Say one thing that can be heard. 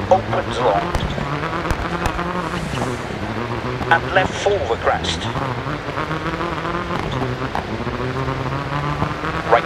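A rally car engine revs hard and shifts through the gears.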